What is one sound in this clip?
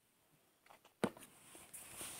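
A glass clinks as it is set down on a table.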